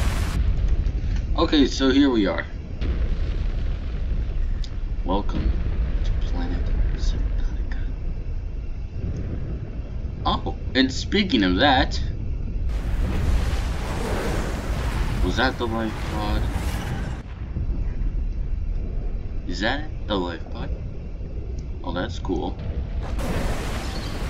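Water rumbles low and steady underwater.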